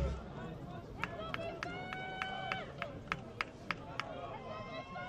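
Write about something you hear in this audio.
A crowd claps outdoors.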